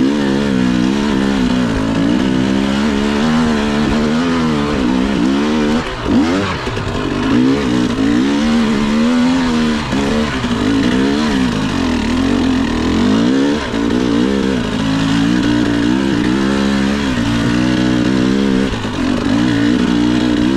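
Tyres crunch over a rough dirt trail.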